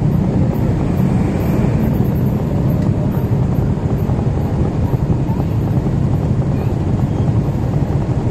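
Motorcycle engines idle nearby in traffic.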